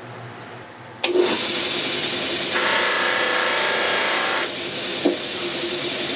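A grinding wheel whirs steadily.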